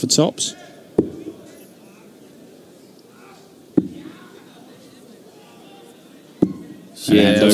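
Darts thud into a dartboard one after another.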